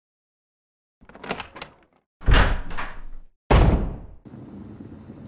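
A heavy wooden door creaks open and thuds.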